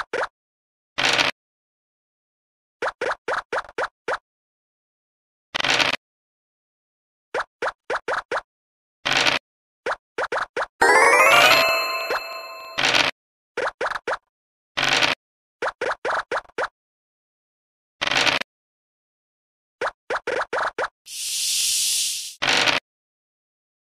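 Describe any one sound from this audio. A die rattles briefly as it is rolled.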